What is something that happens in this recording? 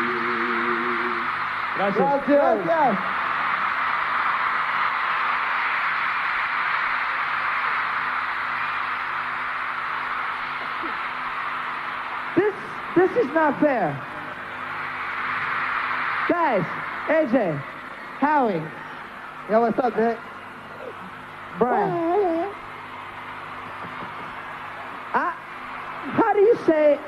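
A large crowd screams and cheers.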